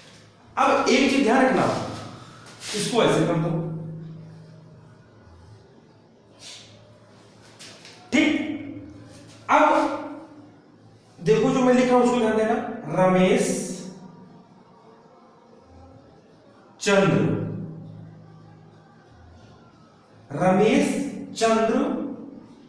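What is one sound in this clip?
A man speaks with animation nearby, in a room with some echo.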